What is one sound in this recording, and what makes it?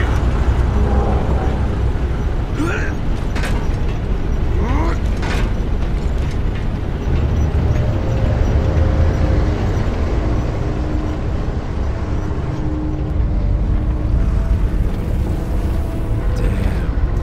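Wind blows steadily outdoors with a deep rumble.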